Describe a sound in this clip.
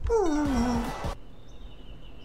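A young boy groans loudly close to a microphone.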